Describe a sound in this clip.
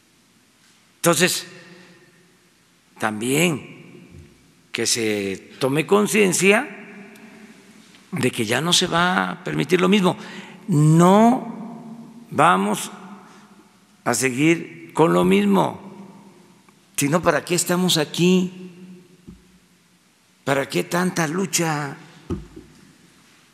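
An elderly man speaks deliberately into a microphone, in bursts with pauses, in a room with some echo.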